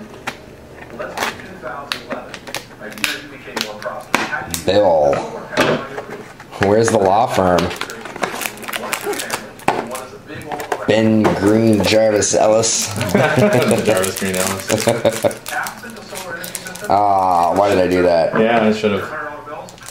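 Trading cards and packs rustle and tap as hands handle them.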